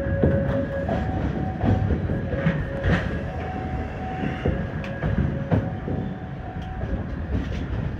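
A level crossing bell rings in a two-tone pattern ahead.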